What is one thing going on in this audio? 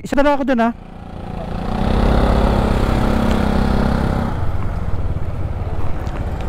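A motorcycle engine accelerates as it pulls away.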